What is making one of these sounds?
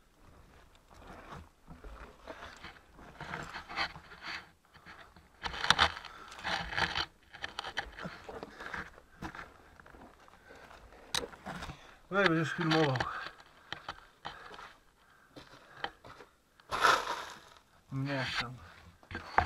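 Loose gravel crunches and scrapes close by.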